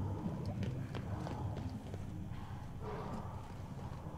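Footsteps thud on a metal walkway.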